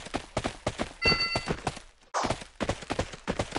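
A bright chime rings as a treasure chest opens.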